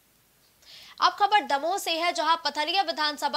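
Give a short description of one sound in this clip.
A woman news presenter speaks clearly into a microphone.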